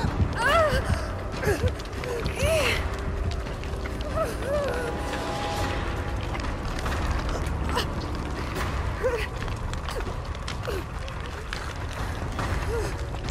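A fire crackles in a barrel.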